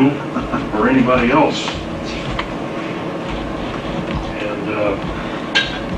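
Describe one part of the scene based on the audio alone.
An elderly man speaks with animation to a room, heard from a short distance.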